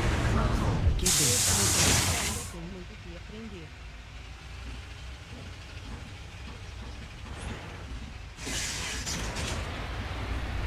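Bus doors open and close with a sharp hiss of air.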